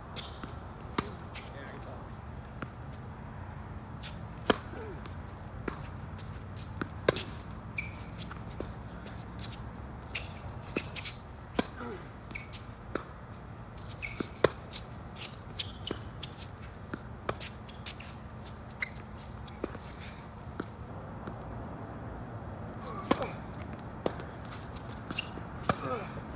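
A tennis ball is struck with sharp pops of a racket, back and forth.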